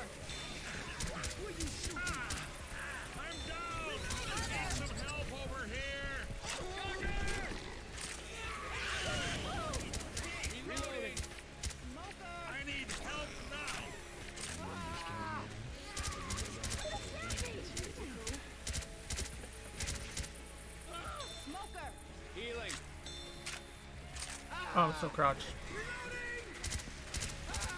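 Rapid gunshots crack from a rifle.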